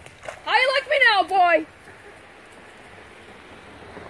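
A boy wades and splashes through shallow water.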